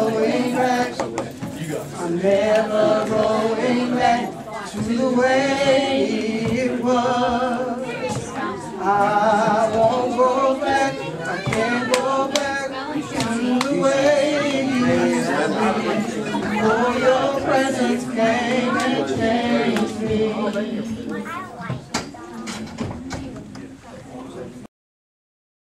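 A group of men sing together in harmony, echoing in a room.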